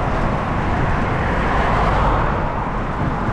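A car passes by in the opposite direction.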